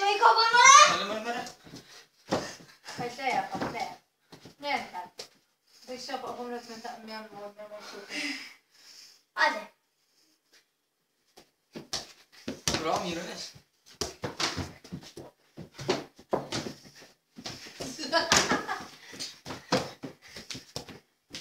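A football thuds against bare feet and the floor.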